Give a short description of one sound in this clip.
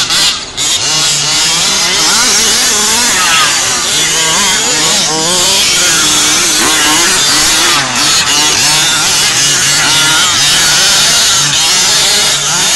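Small electric motors of toy racing cars whine, rising and falling as the cars speed up and slow down.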